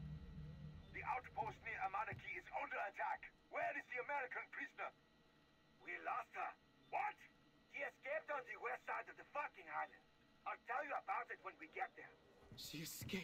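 A man speaks through a crackly radio.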